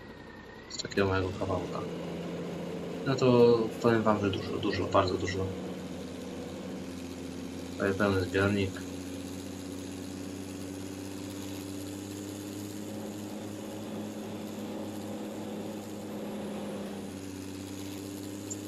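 A tractor engine hums steadily as it drives.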